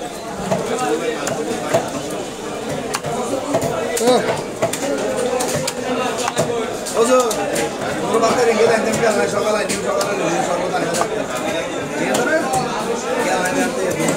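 A knife cuts and scrapes through fish on a wooden block.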